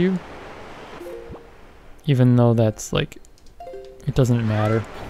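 A game menu gives short electronic blips as it opens and closes.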